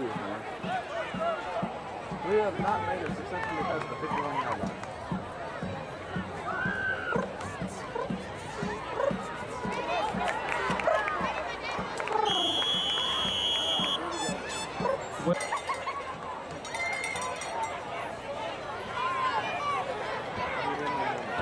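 A crowd cheers and shouts from the stands outdoors.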